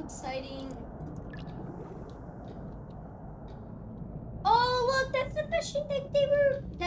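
A young boy talks excitedly and loudly into a nearby microphone.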